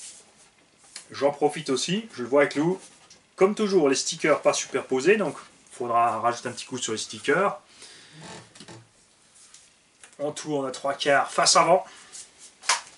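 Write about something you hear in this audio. A man talks calmly and clearly close to a microphone.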